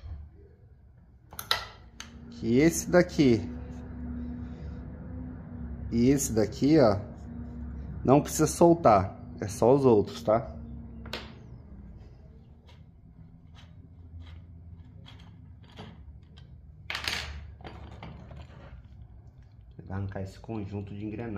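Small metal parts click and clink as they are handled.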